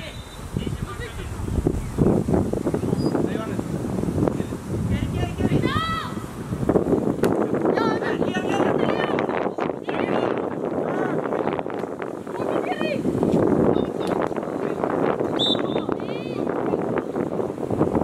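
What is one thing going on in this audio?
Young players shout and call to each other across an open field outdoors.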